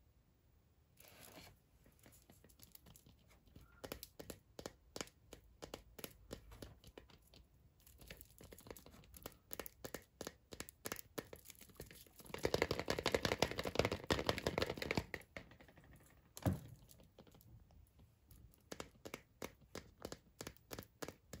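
Foil wrapping crinkles and crackles.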